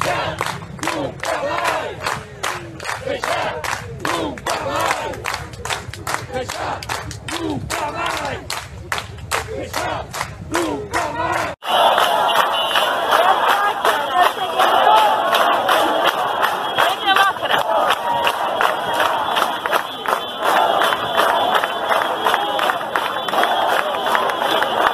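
A crowd chants and shouts loudly.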